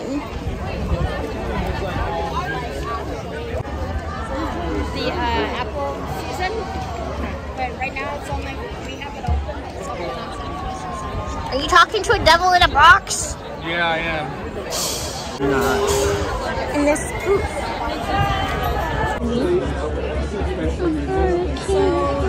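A crowd of men and women chatters outdoors in a busy open space.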